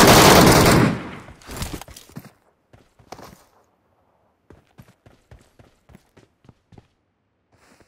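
Footsteps run.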